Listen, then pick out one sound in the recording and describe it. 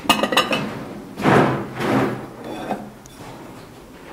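Ceramic plates clink together as one is lifted.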